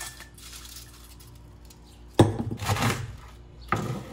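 Chopped vegetables are tipped into a metal bowl.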